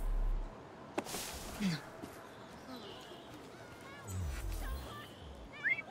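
Footsteps pad softly on grass.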